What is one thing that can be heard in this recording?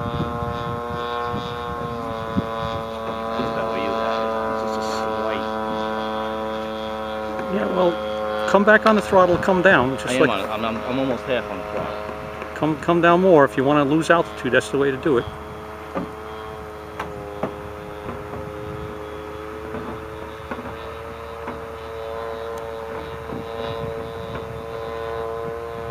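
A small model plane engine buzzes steadily overhead, its pitch shifting as it flies.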